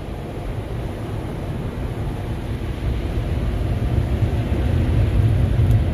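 Car wash brushes rumble and slap across the glass.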